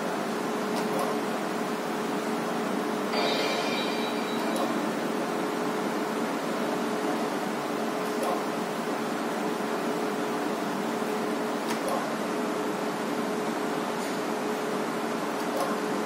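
A slot machine's reels spin and stop with short clicks.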